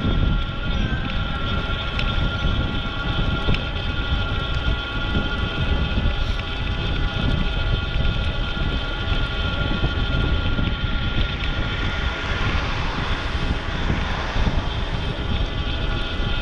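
Bicycle tyres hum on a smooth path.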